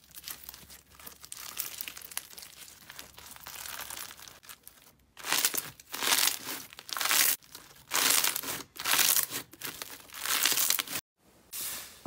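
Soft slime squishes and crackles under fingers.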